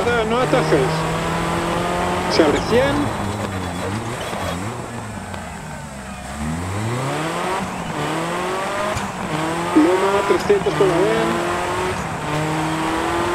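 A rally car engine revs hard, dropping and climbing in pitch through gear changes.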